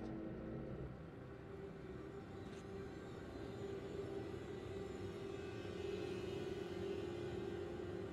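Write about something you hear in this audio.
A heavy door creaks slowly open.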